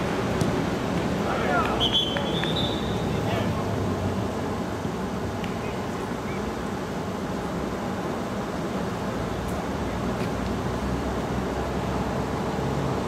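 Players call out to one another across the pitch.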